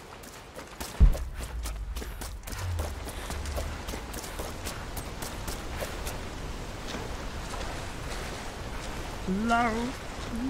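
Legs splash and wade through shallow water.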